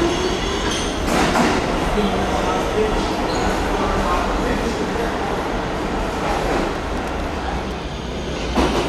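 Train wheels screech and squeal on the rails.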